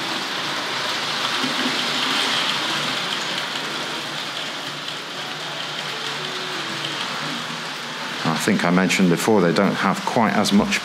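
A model train whirs and clatters along its track.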